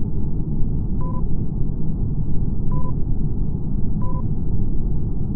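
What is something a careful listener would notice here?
A short game chime sounds a few times as messages pop up.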